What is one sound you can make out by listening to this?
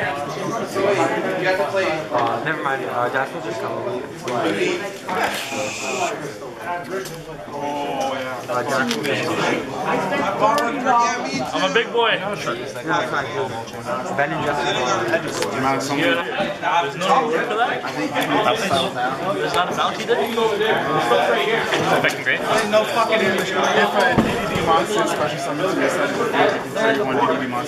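Young people talk with each other nearby.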